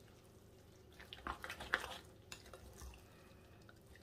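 A spoon scrapes and squelches through a thick mixture in a bowl.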